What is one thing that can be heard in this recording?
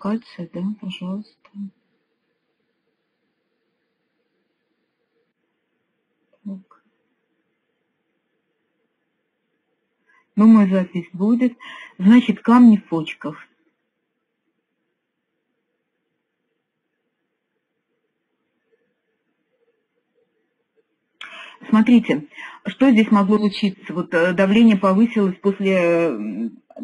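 A middle-aged woman speaks calmly through an online call, in bursts with pauses.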